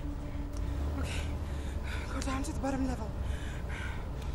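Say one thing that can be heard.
A car engine rumbles low.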